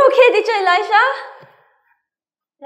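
A young woman speaks brightly and with animation into a microphone.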